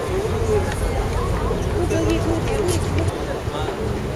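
A crowd of people murmurs and chats outdoors.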